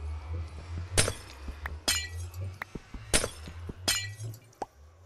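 Glass shatters in quick crisp crashes, one after another.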